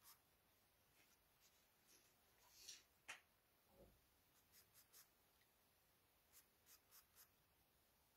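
A pencil scratches softly across paper in short strokes.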